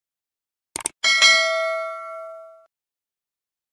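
A small bell chimes brightly and rings out.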